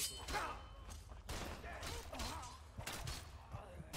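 Blades strike and clash in a fight.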